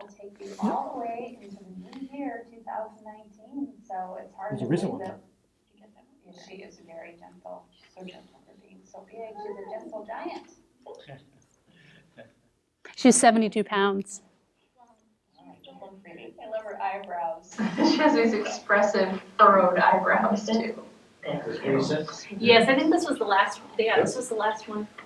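A woman speaks calmly through a loudspeaker in a room.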